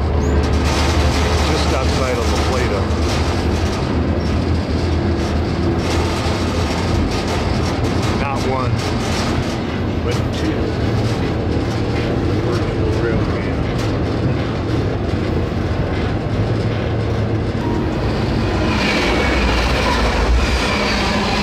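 A freight train rumbles and clatters steadily along the rails.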